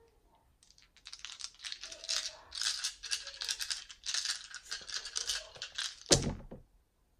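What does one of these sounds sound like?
Dice rattle as they are shaken in cupped hands.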